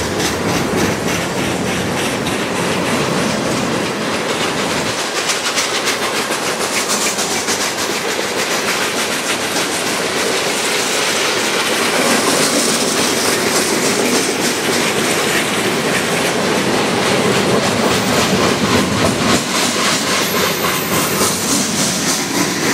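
Freight train cars rumble and roll past close by.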